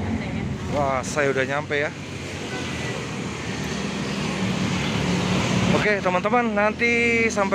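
Motorbike engines drone past on a busy road.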